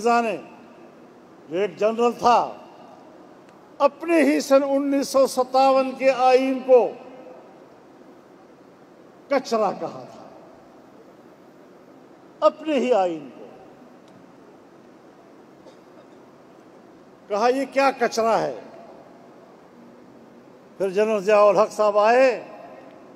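An elderly man gives a forceful speech over a loudspeaker, in bursts with pauses between them.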